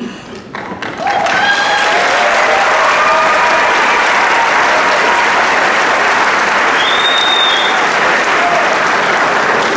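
People in a crowd cheer and shout.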